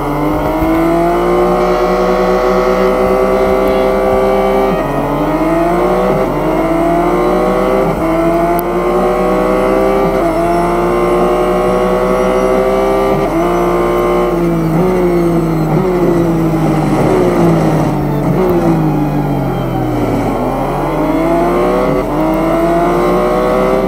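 A racing car engine roars, its pitch rising and dropping with each gear change and slowing down through corners.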